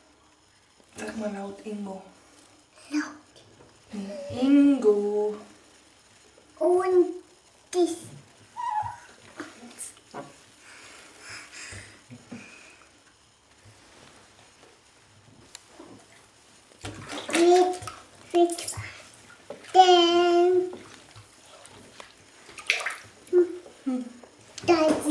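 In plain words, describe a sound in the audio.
A young woman talks softly and playfully close by.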